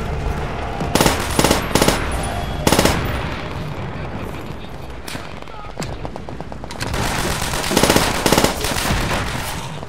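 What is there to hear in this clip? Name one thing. A submachine gun fires loud bursts.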